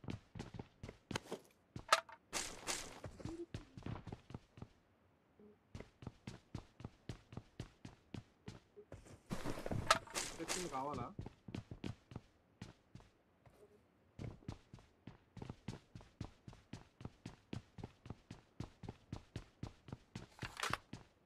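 Video game footsteps run across a hard floor.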